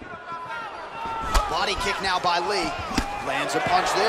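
Punches and kicks land with dull thuds.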